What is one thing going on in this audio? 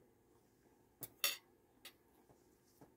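A fork clicks against a plate close by.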